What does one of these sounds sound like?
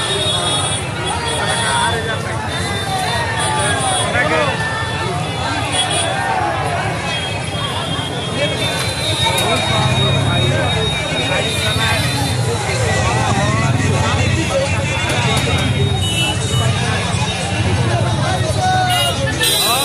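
A large crowd chatters and shouts loudly all around, close by.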